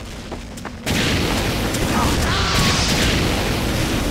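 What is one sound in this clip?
A flamethrower roars loudly in a steady rush.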